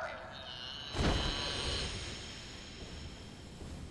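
A heavy blow lands with a loud crash and a ringing after it.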